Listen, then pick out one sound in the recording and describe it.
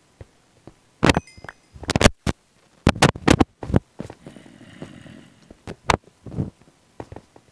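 A pickaxe breaks stone blocks with sharp clicks in a video game.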